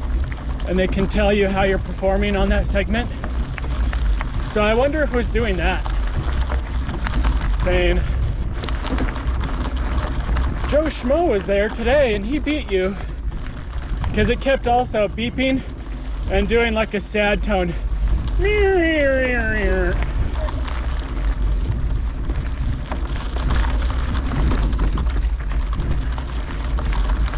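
Bicycle tyres crunch over a rough dirt trail.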